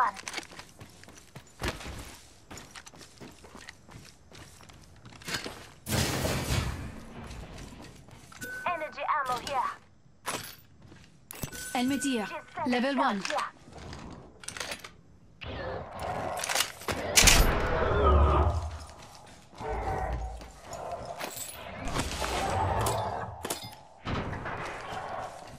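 Footsteps clatter quickly on a metal floor.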